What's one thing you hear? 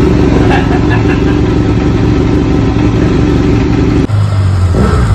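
A parallel-twin motorcycle engine runs.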